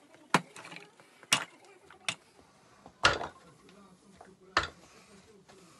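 Wooden pieces knock sharply against each other.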